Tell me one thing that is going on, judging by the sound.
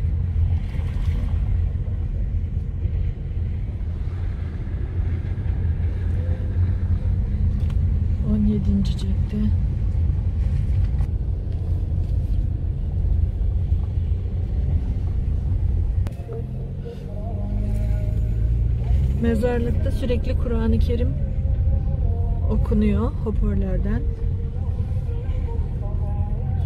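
Tyres rumble over a paved road.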